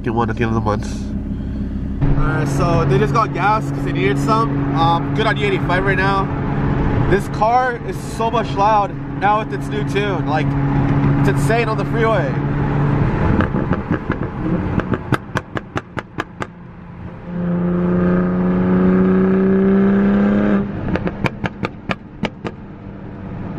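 Tyres hum on a highway.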